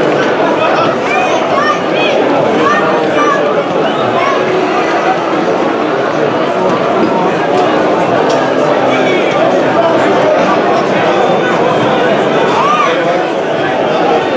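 Spectators whistle shrilly from the stands.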